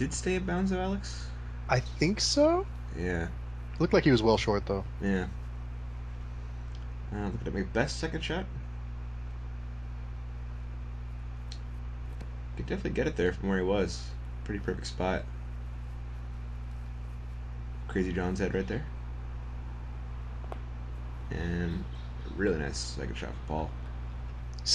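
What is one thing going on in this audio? A man talks calmly close to a microphone, in short bursts.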